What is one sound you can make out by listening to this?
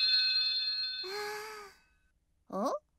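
A young girl speaks briefly.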